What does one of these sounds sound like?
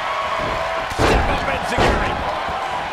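Heavy bodies slam hard onto a wrestling mat.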